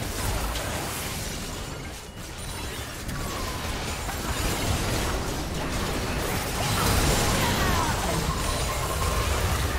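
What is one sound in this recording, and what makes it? Game spell effects whoosh, crackle and explode in a busy battle.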